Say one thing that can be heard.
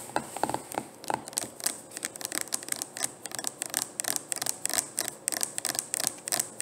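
Fingers tap quickly and crisply close to the microphone.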